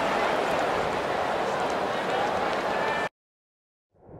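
A large stadium crowd roars steadily, then cuts off suddenly.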